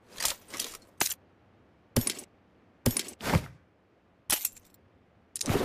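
Short rustling clicks sound as game items are picked up.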